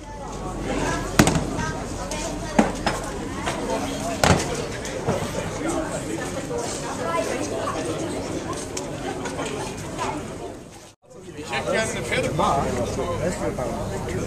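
Several men chat at once nearby outdoors.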